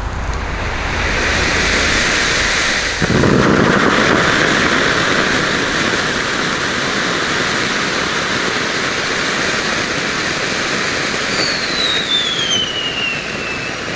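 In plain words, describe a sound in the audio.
A firework fountain roars and crackles loudly with a sudden burst.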